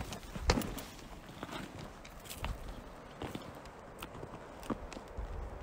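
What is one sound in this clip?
Boots crunch on dry gravel and twigs.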